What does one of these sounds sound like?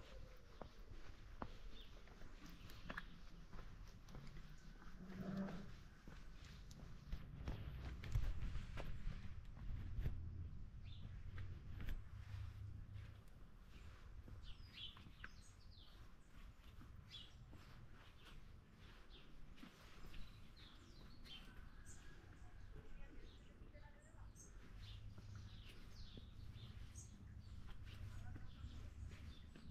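Footsteps crunch and scuff on a stone path outdoors.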